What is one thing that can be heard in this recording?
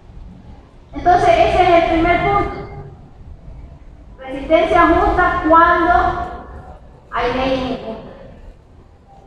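A woman speaks with animation through a microphone in an echoing hall.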